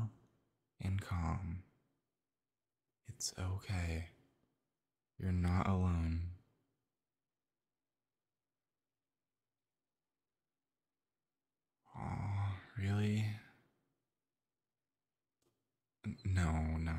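A young man speaks softly and close up, in short phrases with long pauses.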